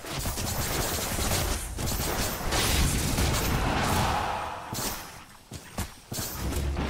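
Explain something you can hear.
Magic spells crackle and whoosh in a video game battle.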